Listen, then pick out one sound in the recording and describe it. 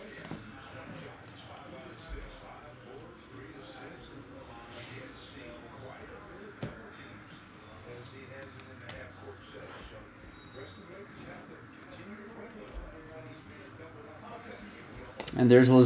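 Trading cards rustle and slide as they are shuffled by hand.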